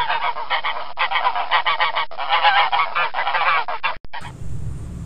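Geese honk and cackle nearby.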